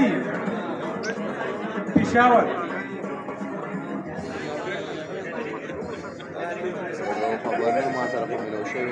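A man speaks into a microphone over a loudspeaker in an echoing hall.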